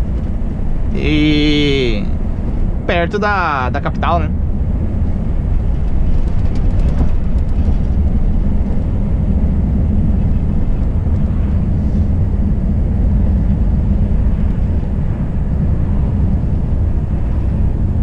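Tyres roll along a road with a steady rush.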